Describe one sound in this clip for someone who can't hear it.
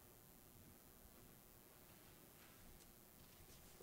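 Footsteps echo softly in a large, reverberant hall.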